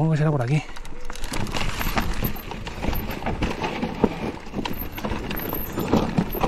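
Mountain bike tyres crunch over loose rocks on a dirt trail.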